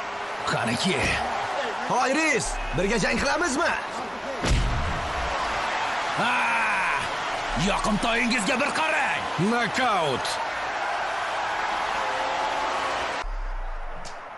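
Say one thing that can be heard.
A crowd shouts and cheers loudly in a large hall.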